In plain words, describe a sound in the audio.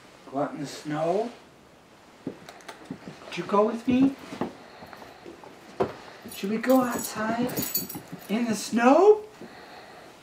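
A man talks softly to a dog close by.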